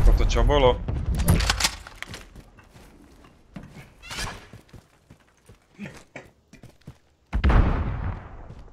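A rifle fires loudly and echoes.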